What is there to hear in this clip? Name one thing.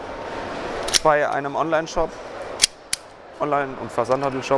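A pistol's mechanism clicks sharply.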